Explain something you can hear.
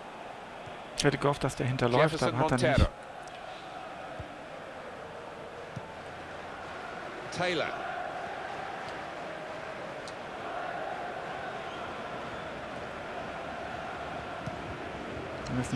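A large stadium crowd murmurs steadily in the distance.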